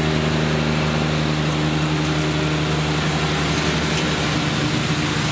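A sweeper's brush whirs as it rolls over pavement.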